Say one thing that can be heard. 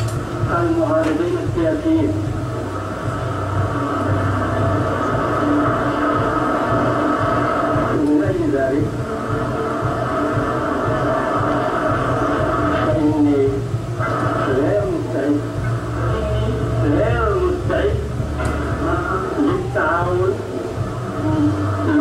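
A woman speaks calmly through a loudspeaker.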